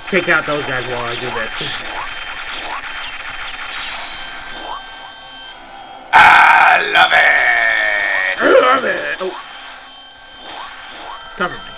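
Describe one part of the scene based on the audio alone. Arcade game guns fire in rapid bursts.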